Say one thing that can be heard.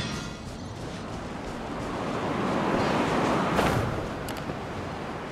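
A soft whooshing swells and fades.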